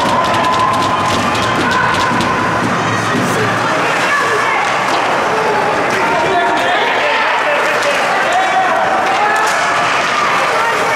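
A crowd of spectators shouts and cheers in a large echoing rink.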